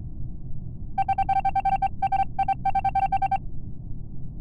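Rapid electronic beeps chirp as text types out.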